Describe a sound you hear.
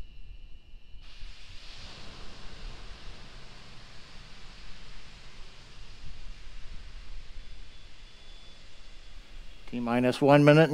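Gas vents from a rocket with a steady distant hiss.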